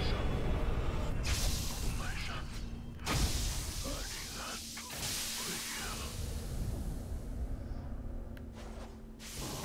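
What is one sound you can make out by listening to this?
Flames roar loudly in bursts.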